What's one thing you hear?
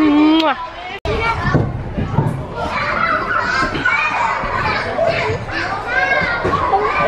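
Children shout and play in a noisy echoing space.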